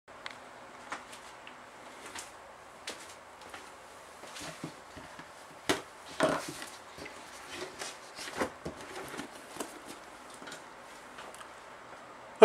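Objects knock and rustle close by.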